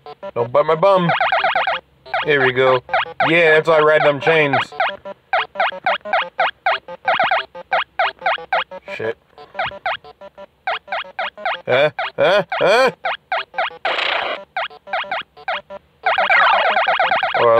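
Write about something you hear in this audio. Bleepy retro video game music plays with rapid electronic blips.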